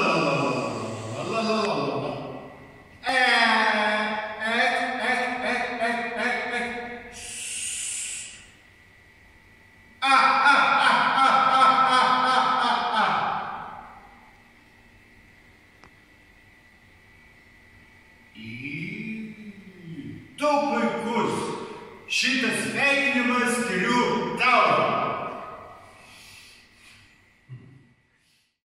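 An elderly man speaks loudly and expressively nearby, in an echoing room.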